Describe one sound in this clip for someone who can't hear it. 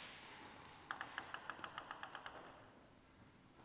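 A table tennis ball bounces quickly on the floor and settles.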